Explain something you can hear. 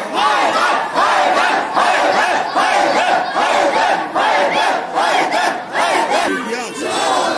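A crowd of young men chants loudly in rhythmic bursts, in a reverberant room.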